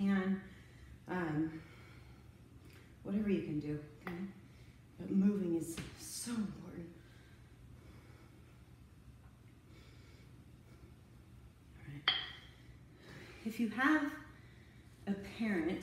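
A woman talks calmly and clearly close by.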